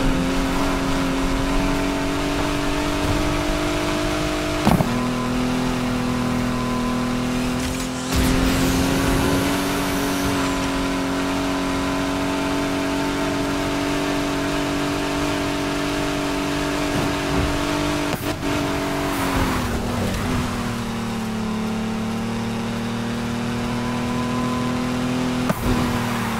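A car engine roars at high revs, shifting gears as it speeds along.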